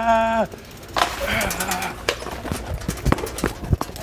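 A bicycle crashes onto a hard floor.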